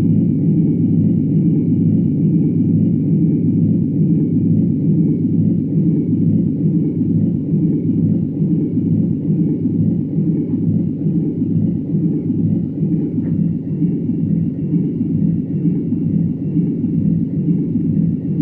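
A jet engine roars with a steady low drone.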